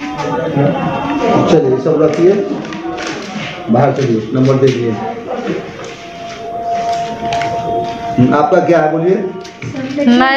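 A printer feeds paper through as it prints.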